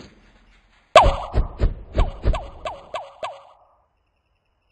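Coins chime one after another as they are collected in a game.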